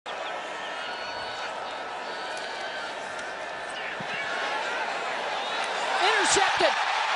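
A large stadium crowd roars, growing louder toward the end.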